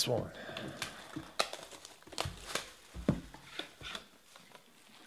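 Foil wrapping crinkles and rustles as hands tear it open.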